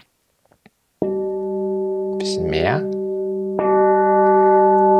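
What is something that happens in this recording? A singing bowl is struck twice and rings with a long, steady hum.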